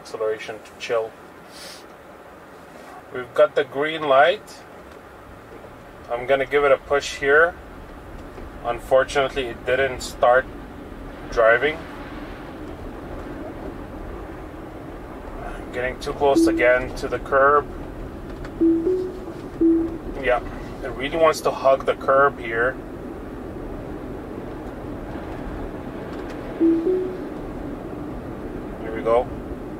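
A car drives along a road with a low, steady rumble heard from inside.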